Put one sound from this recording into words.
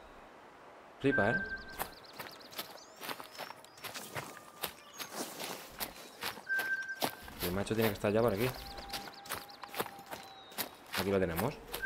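Footsteps crunch through snow and brush.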